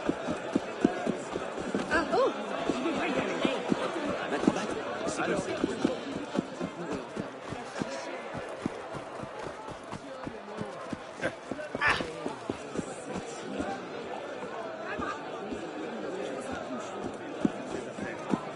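Quick footsteps run over cobblestones.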